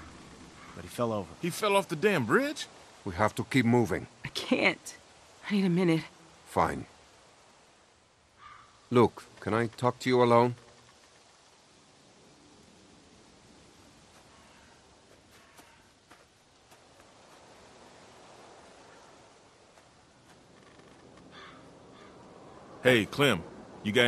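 An older man asks a question in a deep voice.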